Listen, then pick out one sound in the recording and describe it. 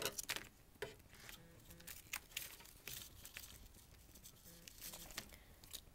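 Scissors snip through tape.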